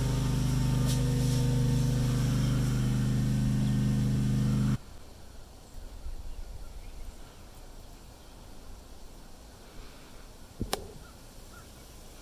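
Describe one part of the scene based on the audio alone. Hens cluck softly nearby.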